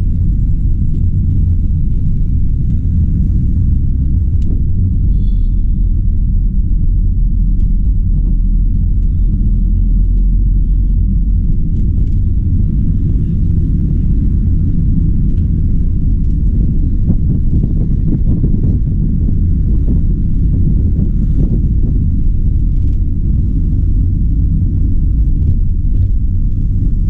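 A car engine drones steadily from inside the car.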